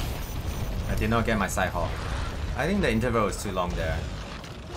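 A huge beast roars loudly.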